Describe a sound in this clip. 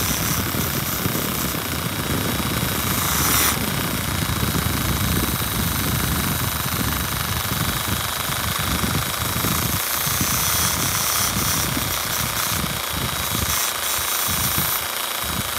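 A rotary tool whirs at high speed, grinding against a metal ring with a harsh scraping.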